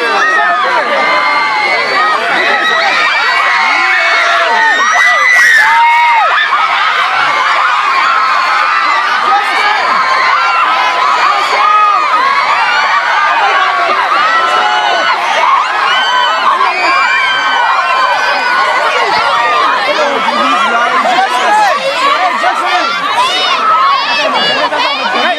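A dense crowd of young girls screams and shrieks excitedly close by.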